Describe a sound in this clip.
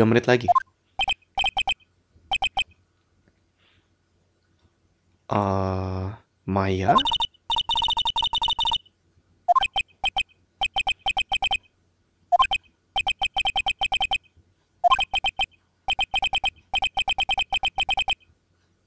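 Short electronic blips chatter rapidly in bursts.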